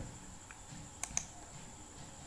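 A mouse button clicks once.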